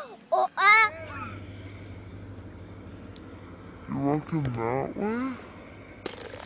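A child shouts excitedly nearby.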